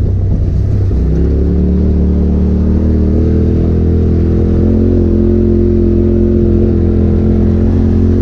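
An off-road vehicle's engine drones loudly and rises in pitch as it climbs.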